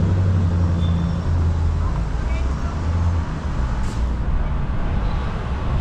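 Traffic hums faintly in the distance.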